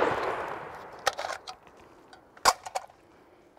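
Metal parts of a rifle click and clack.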